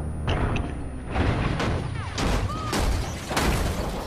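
A truck crashes against another vehicle with a loud metal impact.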